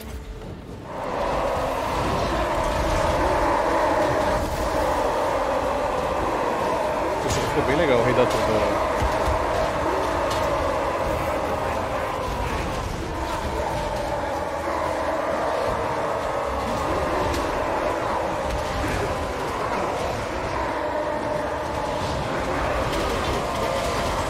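A battle rages with a loud, steady roaring din of many fighters.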